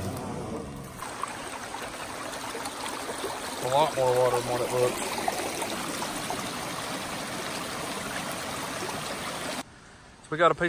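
Water rushes and gurgles loudly nearby.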